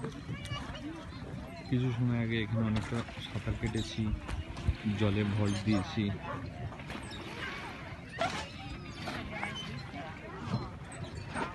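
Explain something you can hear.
Water laps gently against the shore.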